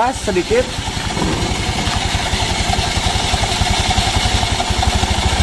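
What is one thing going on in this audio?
A scooter engine idles with a rapid, steady low putter.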